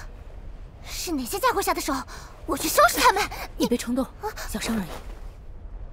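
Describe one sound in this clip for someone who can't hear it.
A girl speaks softly, close by.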